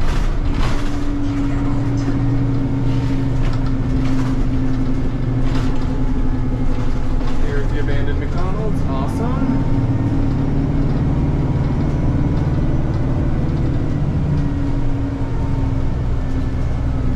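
A bus interior rattles and clicks as it rolls along.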